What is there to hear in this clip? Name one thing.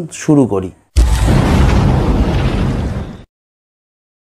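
A fiery explosion roars and fades out.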